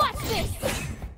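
A thrown blade whooshes through the air.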